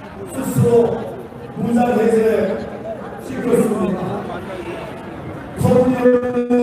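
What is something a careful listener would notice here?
A man speaks forcefully through a loudspeaker outdoors, echoing.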